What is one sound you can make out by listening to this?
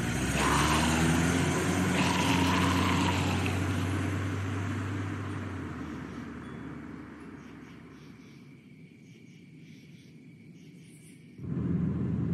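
Footsteps fall slowly on a paved road.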